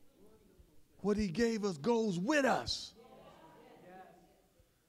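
A man preaches loudly into a microphone in an echoing hall, his voice rising and falling.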